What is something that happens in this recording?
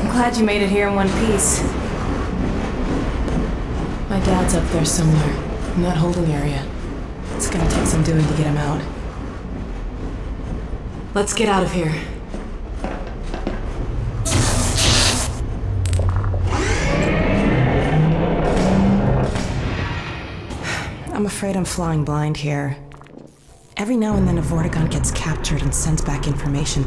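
A young woman talks calmly and closely.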